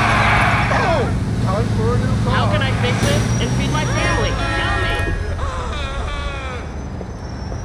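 Car tyres screech on the road.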